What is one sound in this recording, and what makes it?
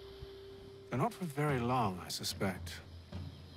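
A man speaks calmly and quietly in a low voice.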